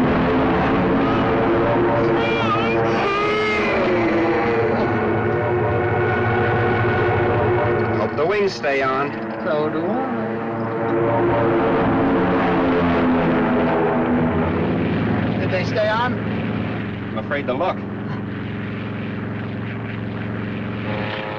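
Propeller plane engines drone steadily and loudly.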